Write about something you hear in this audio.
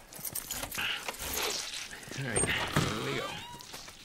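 A wooden door swings open.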